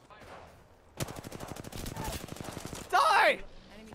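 An automatic gun fires in a rapid burst.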